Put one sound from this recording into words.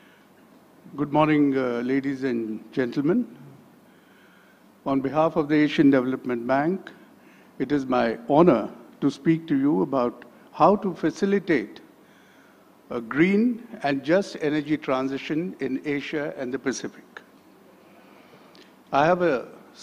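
A man speaks calmly into a microphone over a loudspeaker in a large hall.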